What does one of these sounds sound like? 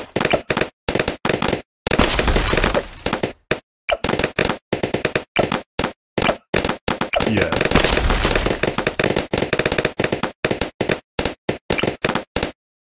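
Cartoon balloons pop in quick succession.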